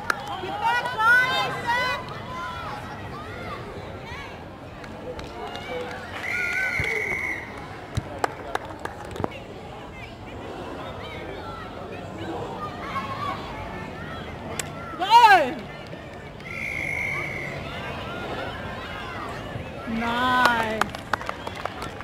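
Players and spectators shout and cheer outdoors.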